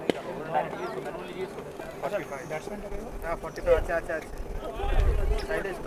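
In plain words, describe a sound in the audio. A cricket bat strikes a ball with a sharp crack.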